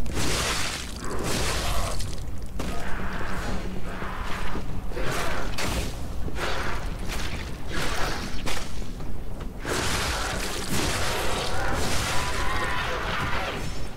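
Blades swing and clash in a fight.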